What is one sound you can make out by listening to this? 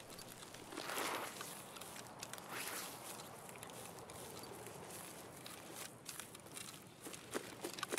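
Footsteps swish softly through tall grass.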